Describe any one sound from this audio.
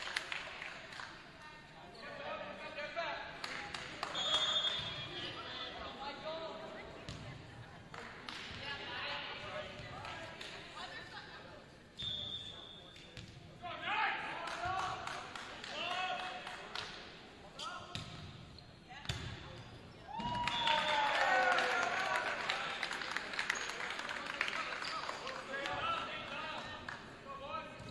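Players shout and call to each other in a large echoing gym.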